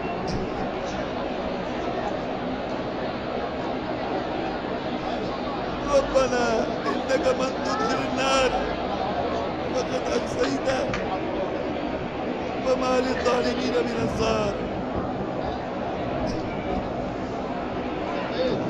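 A large crowd murmurs steadily.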